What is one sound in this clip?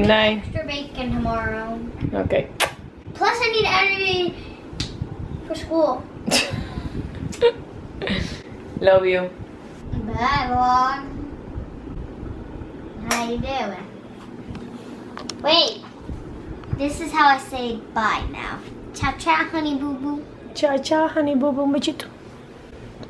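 A young girl talks softly and playfully close by.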